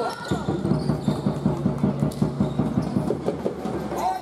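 A basketball bounces rhythmically on a hard court in an echoing gym.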